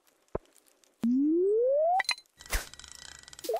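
A fishing line whips out and plops into water.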